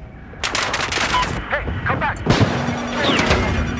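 A boat explodes with a loud blast.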